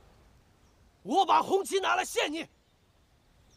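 A young man shouts forcefully close by.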